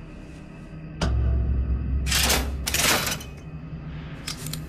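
A machine rumbles loudly and briefly.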